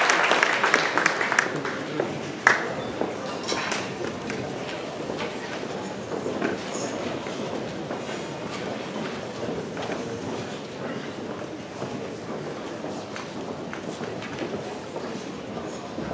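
A large crowd murmurs and chatters throughout a big echoing hall.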